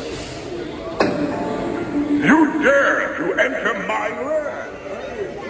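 An animated figure talks in a deep, spooky old man's voice through a small loudspeaker.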